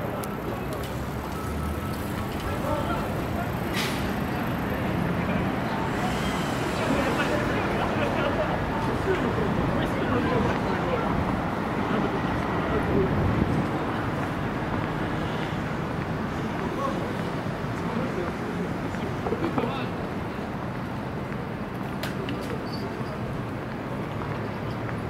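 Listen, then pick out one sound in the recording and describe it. City traffic hums steadily in the distance, outdoors.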